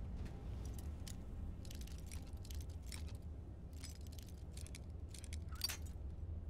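A lock pick scrapes and clicks inside a metal lock.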